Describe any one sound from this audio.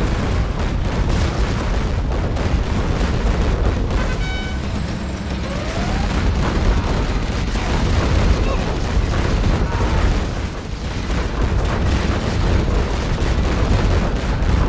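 Machine guns rattle in quick bursts.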